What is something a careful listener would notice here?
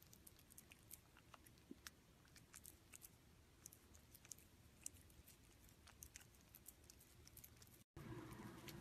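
A cat chews and smacks wetly on soft food, close up.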